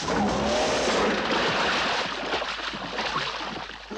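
A vehicle crashes into water with a big splash.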